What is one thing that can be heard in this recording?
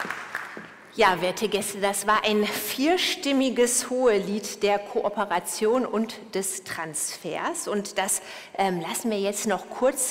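A woman speaks calmly into a microphone over loudspeakers.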